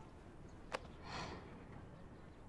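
A young woman sighs softly, close by.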